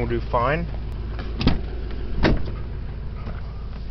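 A car door latch clicks and the door opens.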